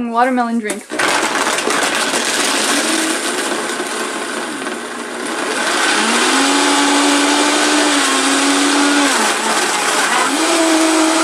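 A blender whirs steadily, crushing ice and fruit.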